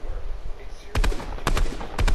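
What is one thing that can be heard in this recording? A gun fires several sharp shots.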